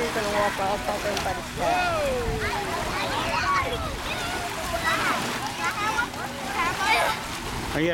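Water splashes as children wade.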